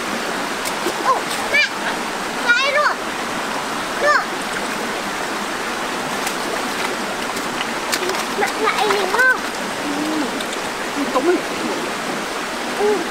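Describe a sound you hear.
A young girl speaks in a high voice nearby.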